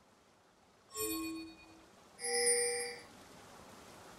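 A bright electronic game chime rings twice.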